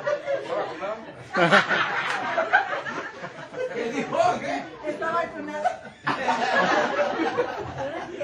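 Guitars strum a lively rhythm.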